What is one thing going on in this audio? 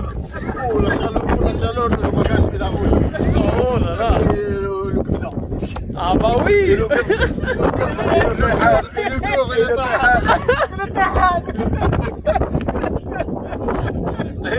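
Young men talk with animation close by, outdoors.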